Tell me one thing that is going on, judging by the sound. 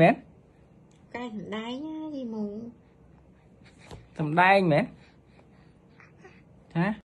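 A baby coos and babbles close by.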